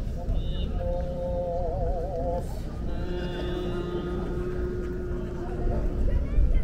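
A man chants in long, wavering, drawn-out tones through a microphone outdoors.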